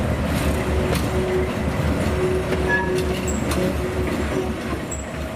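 A diesel locomotive engine rumbles steadily as it rolls slowly past.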